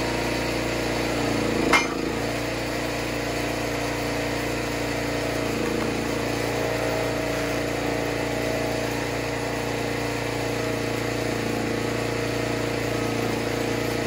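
A log splitter's engine hums steadily throughout.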